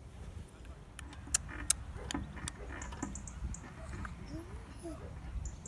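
A baby giggles close by.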